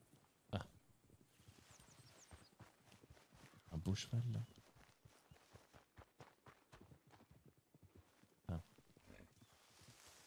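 A person's footsteps swish through tall grass.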